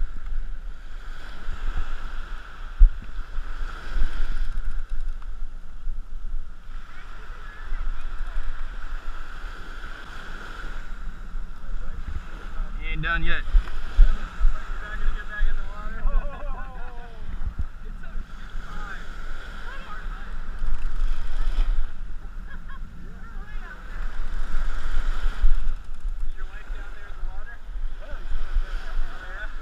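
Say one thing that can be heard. Small waves wash and break on the shore.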